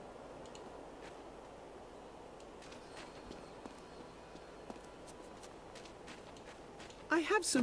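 Footsteps tread softly on stone.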